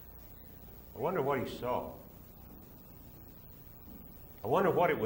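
An elderly man speaks slowly and deliberately into a microphone.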